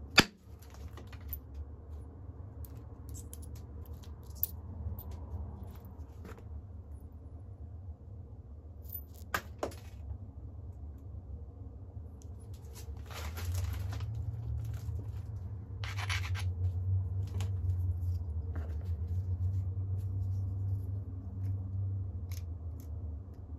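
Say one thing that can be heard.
A stone tool presses against stone, with small sharp clicks and snaps of flakes breaking off.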